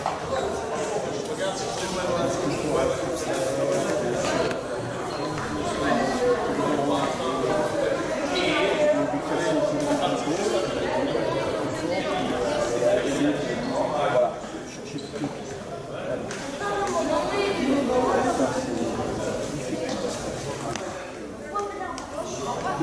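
A crowd of children and adults chatters in a large echoing hall.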